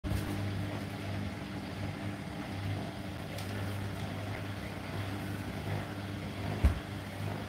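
Laundry and water slosh inside a turning washing machine drum.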